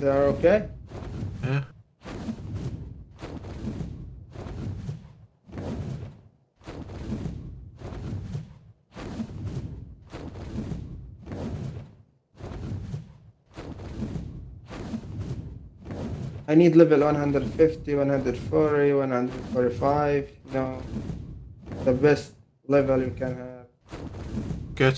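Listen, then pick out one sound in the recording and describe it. A large creature's wings beat in a steady rhythm.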